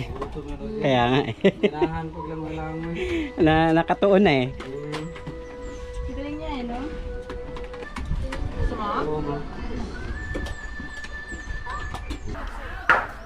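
Several adults chat and laugh nearby.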